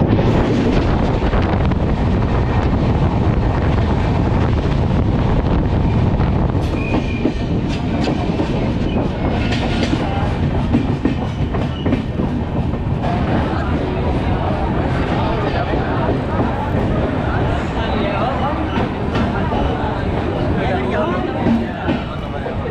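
Wind buffets loudly at an open train door.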